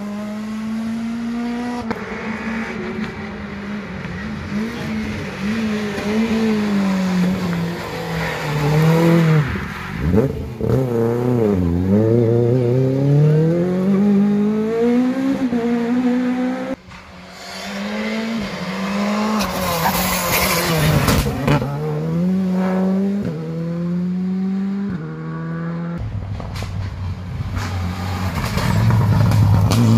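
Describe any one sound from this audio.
A rally car engine roars and revs hard as it races past, rising and falling in pitch.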